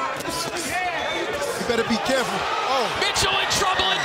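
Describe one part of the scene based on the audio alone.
Gloved punches thud against a body.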